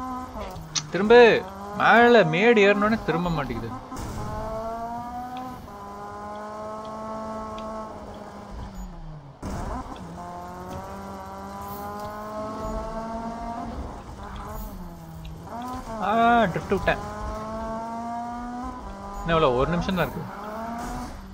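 Tyres screech loudly as a car drifts.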